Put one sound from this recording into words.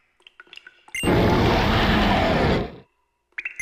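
A creature lets out a loud, harsh roar.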